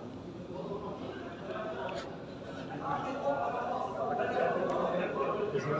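A crowd of men murmurs and chants nearby in a large echoing hall.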